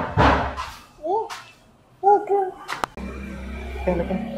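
A small child babbles close by.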